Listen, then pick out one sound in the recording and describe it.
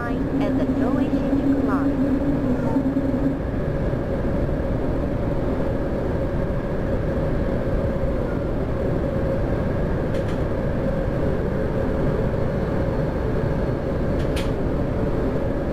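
A train rumbles steadily along the tracks through a tunnel.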